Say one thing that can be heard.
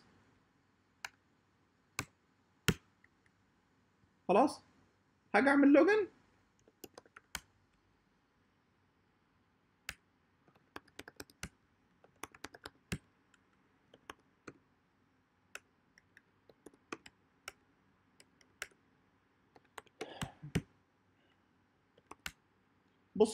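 Keys click on a computer keyboard in short bursts.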